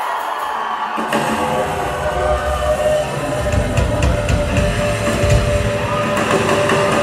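Drums and bass come in with a heavy beat.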